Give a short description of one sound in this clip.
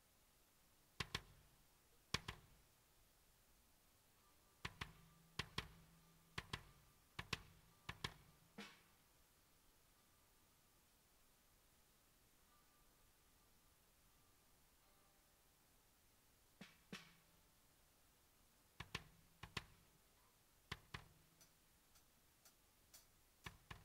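Drums are struck in sharp, spaced hits that ring briefly.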